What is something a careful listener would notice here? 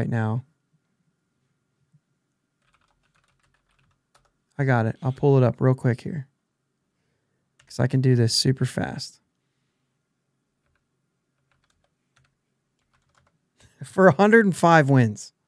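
A man talks animatedly into a close microphone, in short bursts with silent pauses.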